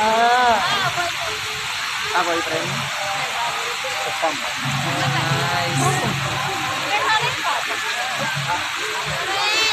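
A fountain's water jets hiss and splash steadily.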